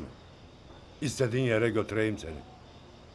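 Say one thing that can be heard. An elderly man speaks close by in a strained, emotional voice.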